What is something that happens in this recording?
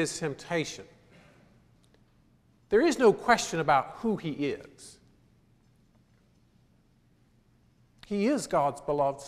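A middle-aged man speaks calmly through a microphone, pausing between phrases, in a reverberant hall.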